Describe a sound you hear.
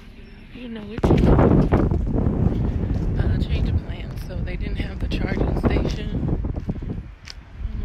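Wind buffets a phone microphone outdoors.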